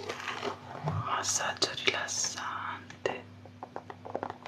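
Fingers tap and scratch on a hard plastic surface.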